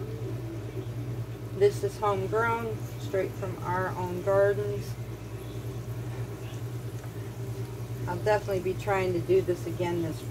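A spoon scrapes and stirs food in a metal pot.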